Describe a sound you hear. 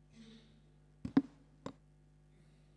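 A microphone knocks against a stand.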